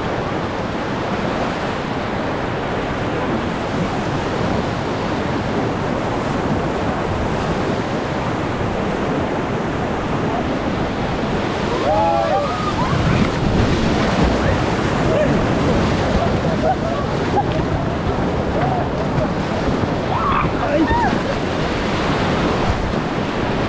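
White water rushes and roars loudly nearby.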